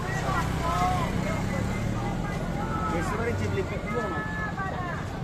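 Men and women chatter nearby in a busy outdoor crowd.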